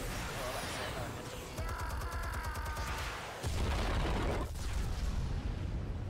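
An explosion booms with a loud roar.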